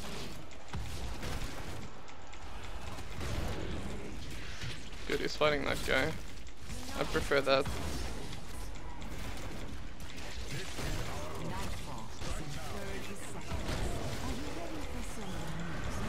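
Magical blasts and blows crackle and thud in a busy fantasy battle.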